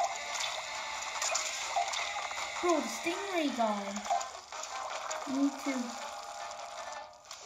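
Video game sound effects splash and splatter from a small speaker.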